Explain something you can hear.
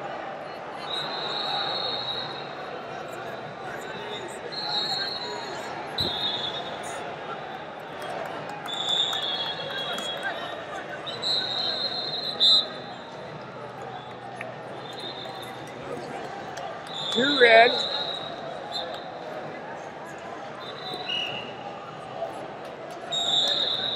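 Shoes squeak on a wrestling mat.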